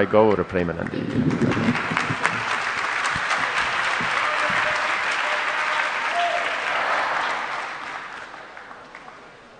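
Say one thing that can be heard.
A large crowd murmurs and responds together.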